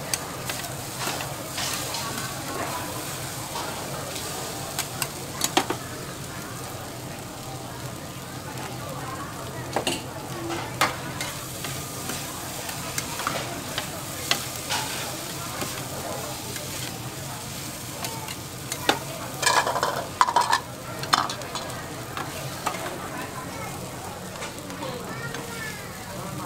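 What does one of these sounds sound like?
Noodles sizzle on a hot griddle.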